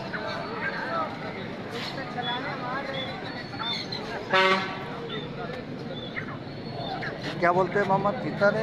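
A crowd of men chatters all around outdoors.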